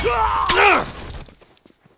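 A blade stabs into a body with a wet thud.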